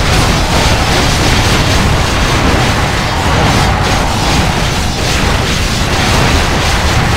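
Weapons clash and magic crackles in a busy game battle.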